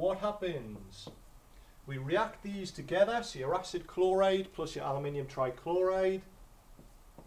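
A young man speaks calmly and clearly nearby.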